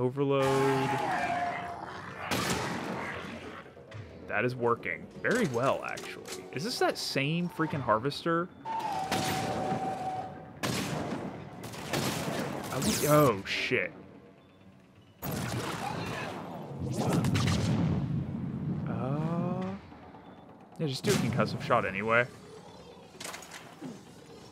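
Rifle shots crack one after another.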